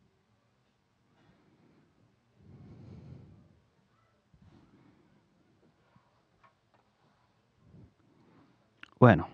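Fingers rub and rustle softly against twine.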